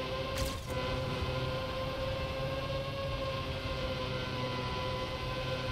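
A racing car engine hums steadily at high revs.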